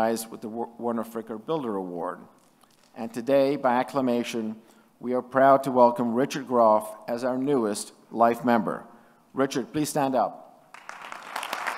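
An older man speaks calmly into a microphone, heard through loudspeakers.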